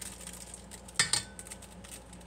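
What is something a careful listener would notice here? A spoon clinks against a metal bowl.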